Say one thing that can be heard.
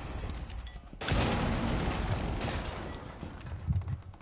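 A loud blast bursts and rumbles away.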